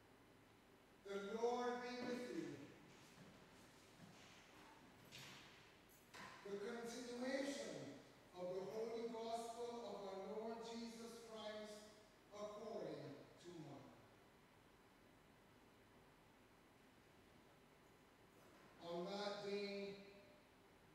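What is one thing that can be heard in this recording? An elderly man chants slowly through a microphone in a large echoing room.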